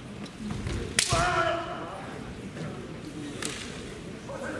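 Bamboo swords strike with sharp clacks.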